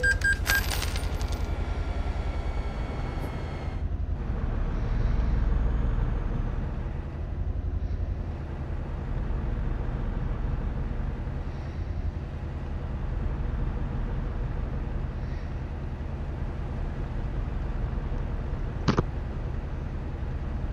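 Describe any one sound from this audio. A truck engine hums low and steady while driving.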